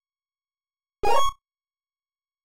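A short electronic game sound plays as a menu choice is made.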